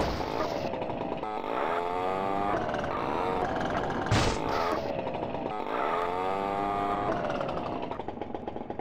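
A small scooter engine revs up and down.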